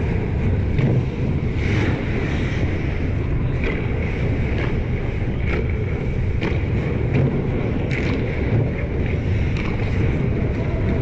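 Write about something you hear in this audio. Skate blades scrape and hiss on ice in a large echoing arena.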